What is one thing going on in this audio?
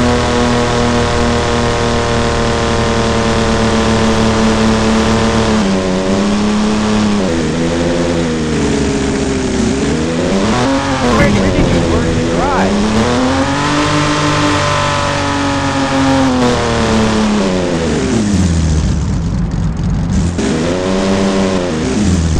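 A simulated SUV engine revs up and down as the car accelerates and slows.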